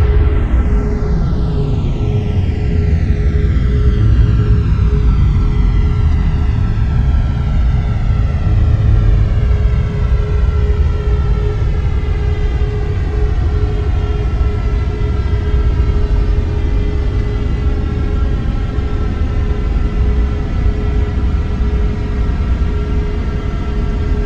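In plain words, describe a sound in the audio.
Jet engines roar steadily as an airliner rolls down a runway.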